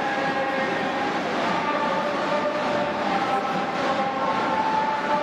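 A large crowd cheers and chants steadily in a big open stadium.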